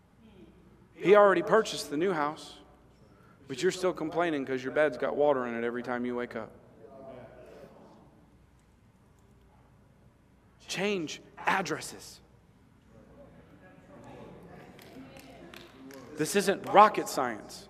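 A man speaks with animation through a microphone, pausing between phrases.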